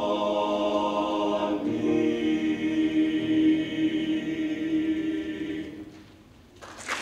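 A choir of young men sings a sustained chord in a large hall.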